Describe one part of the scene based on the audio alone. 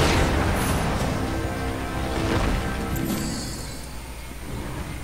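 Blades swing and strike with heavy impacts.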